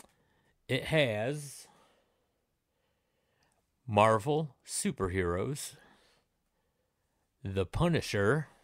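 A man speaks with animation close to a microphone, in short bursts with pauses.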